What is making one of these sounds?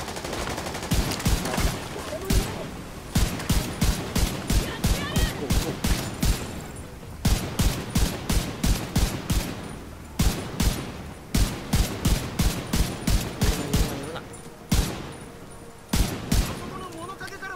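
A rifle fires in rapid bursts of sharp shots.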